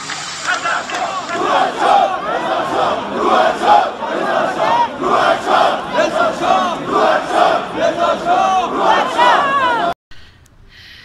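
A large crowd chants loudly outdoors.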